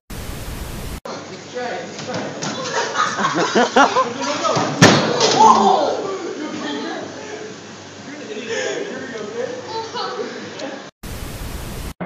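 Boys shout and laugh excitedly nearby.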